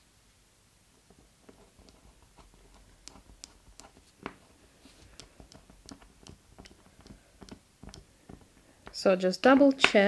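A small hand tool clicks and scrapes against stiff fabric.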